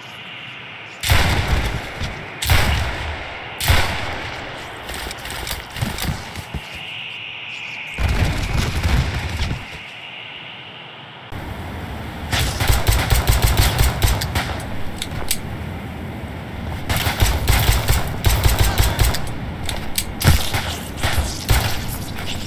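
A pistol fires loud shots, one at a time.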